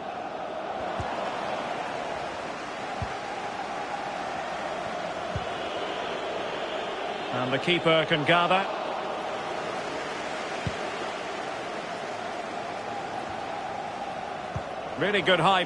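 A ball is kicked with dull thumps.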